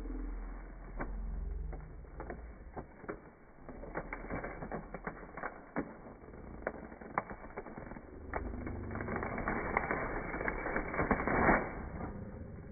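Wrapping paper crinkles and tears close by.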